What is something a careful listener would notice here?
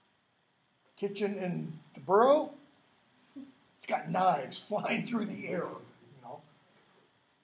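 An older man talks with animation close by, in a room with a slight echo.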